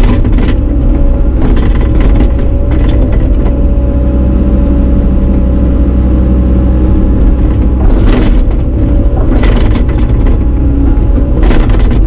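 An excavator bucket scrapes and clanks against frozen ground.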